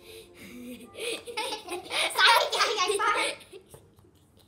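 A young person speaks playfully up close.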